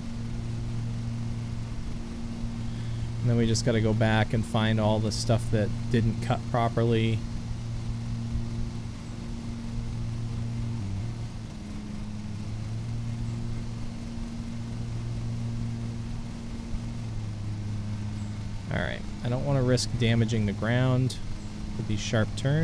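A low engine hums steadily as a ride-on mower drives.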